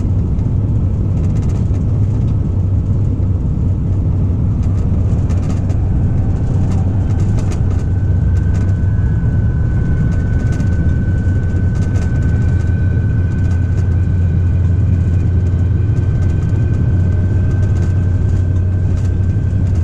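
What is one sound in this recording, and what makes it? A freight train rumbles steadily along the rails.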